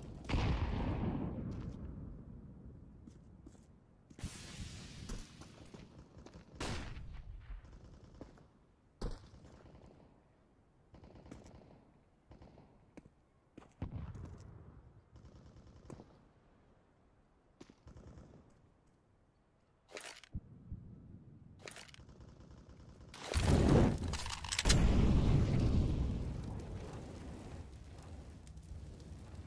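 Footsteps run over hard ground.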